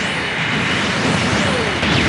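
Energy blasts burst and crackle.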